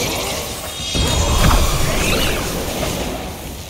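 Rocks crash and shatter as a heavy blow lands.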